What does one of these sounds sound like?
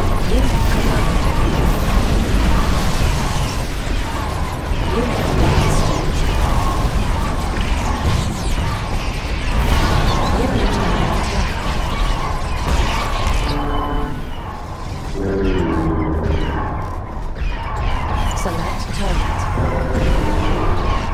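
Laser weapons zap and hum in rapid bursts.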